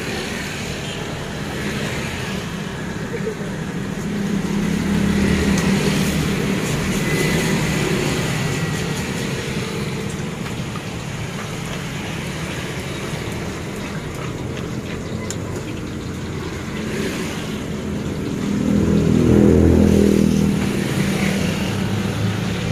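A pestle grinds and scrapes in a stone mortar.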